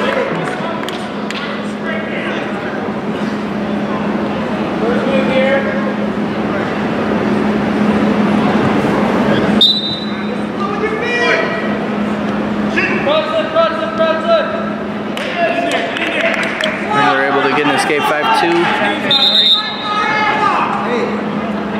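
A crowd murmurs and shouts in a large echoing gym.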